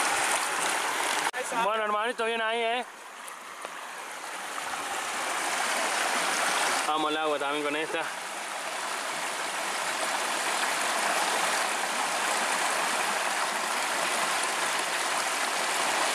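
A river rushes and burbles steadily over rocks outdoors.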